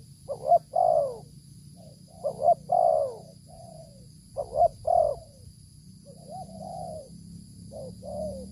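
A dove coos nearby in repeated soft phrases.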